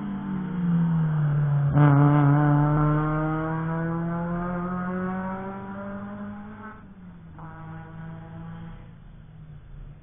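A car engine roars past at speed, dropping in pitch and fading into the distance.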